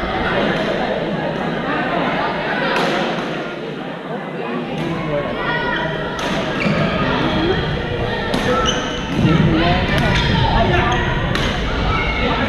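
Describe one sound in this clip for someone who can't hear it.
Young men and women talk and call out across the echoing hall.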